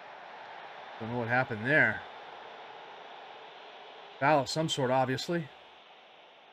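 A young man speaks with animation through a close microphone.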